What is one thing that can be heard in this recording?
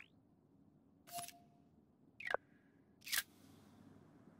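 Short whooshing game menu sounds play one after another.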